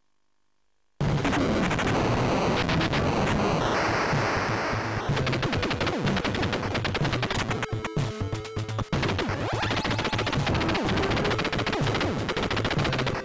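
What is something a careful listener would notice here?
Loud video game music plays with rapid gunfire blasts.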